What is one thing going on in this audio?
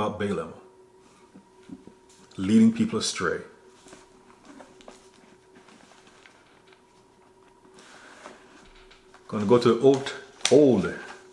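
A man speaks calmly and close to a microphone, in short bursts with long pauses.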